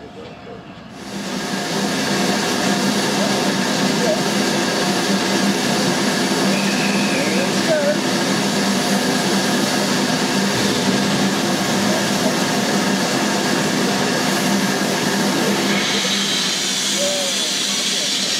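A steam locomotive hisses loudly and steadily close by.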